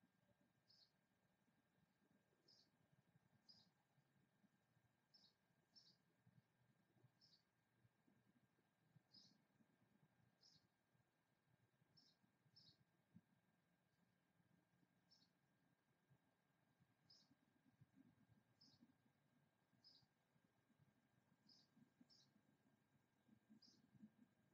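A light breeze blows softly outdoors.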